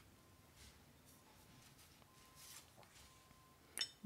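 A small card taps softly as it is set down on a table.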